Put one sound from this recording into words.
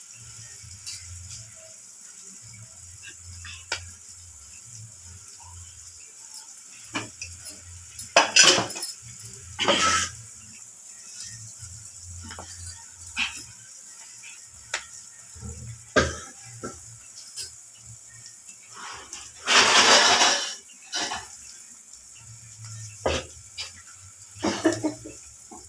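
Eggs sizzle and crackle softly in a hot pan.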